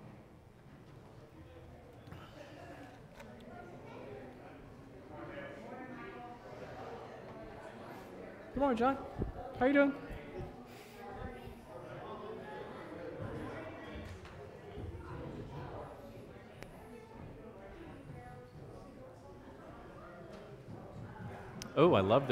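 Several adults chat quietly nearby in a room with some echo.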